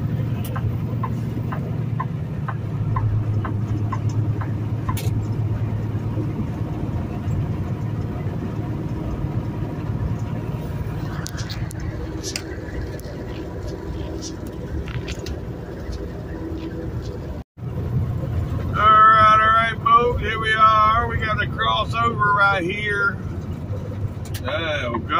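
Tyres hum on a paved road.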